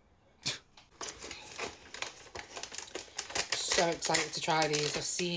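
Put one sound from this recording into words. Cardboard rustles and crinkles as a box is handled.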